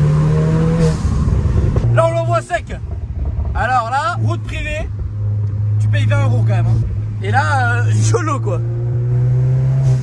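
A young man talks and laughs close by inside a car.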